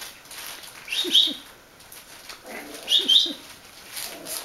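A puppy gives short, high yelps.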